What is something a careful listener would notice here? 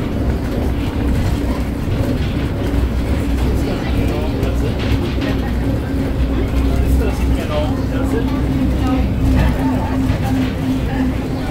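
A train car hums and rumbles steadily as it rolls along an elevated track.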